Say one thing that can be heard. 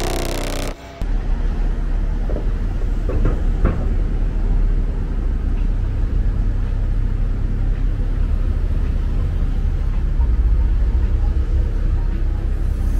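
Traffic rumbles steadily along a busy city street.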